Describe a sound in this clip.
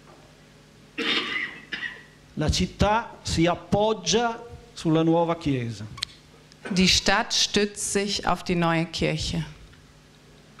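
A middle-aged man speaks through a microphone, in short phrases with pauses.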